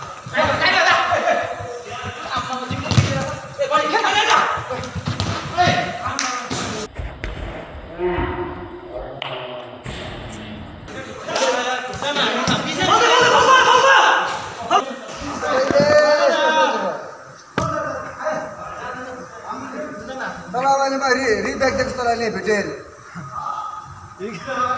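Young men shout and talk to each other outdoors.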